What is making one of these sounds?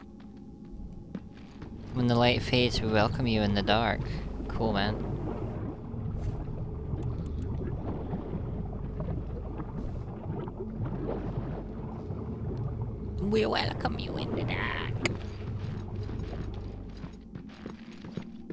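A low, rumbling hum drones steadily.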